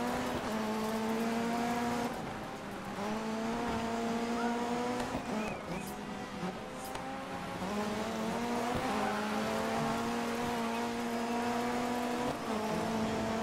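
A rally car engine roars and shifts up and down through the gears.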